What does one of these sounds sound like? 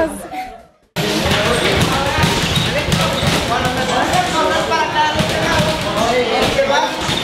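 Boxing gloves thud against pads and a punching bag.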